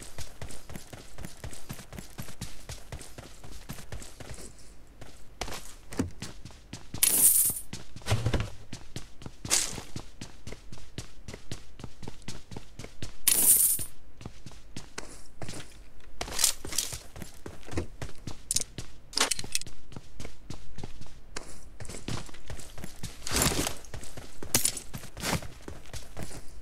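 Footsteps of a game character run quickly over ground and floors.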